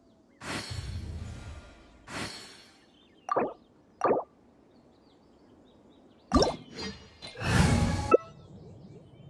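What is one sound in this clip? Electronic menu chimes and whooshes sound now and then.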